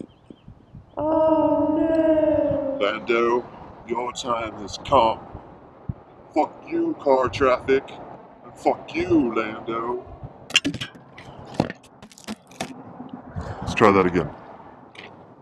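A man speaks with animation outdoors, a short way off.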